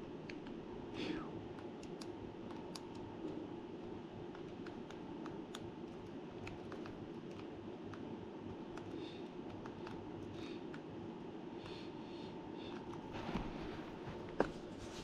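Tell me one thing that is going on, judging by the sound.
Buttons click softly as they are pressed.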